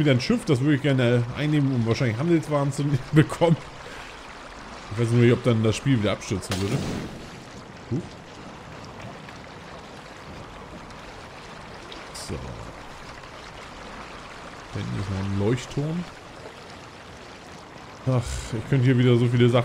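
Water splashes softly against a small boat.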